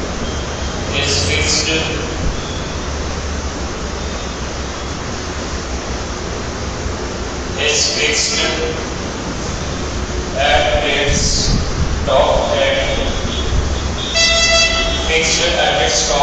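A man speaks calmly through a headset microphone, in a lecturing tone.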